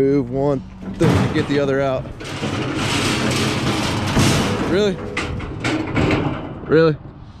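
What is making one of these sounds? Metal carts clatter and rattle as they are pushed together.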